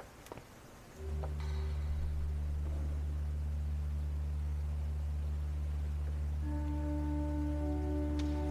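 A pipe organ plays loud, sustained chords in a large echoing hall.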